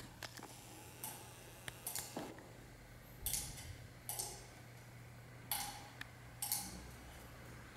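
A metal censer clinks on its chains as it swings.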